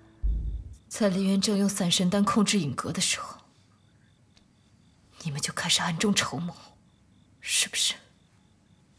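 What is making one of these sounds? A young man speaks softly and coolly, close by.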